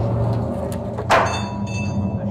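A heavy wooden cross thuds down onto a stone floor.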